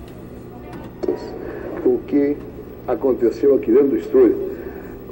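A middle-aged man speaks with feeling into a microphone, heard through an old broadcast.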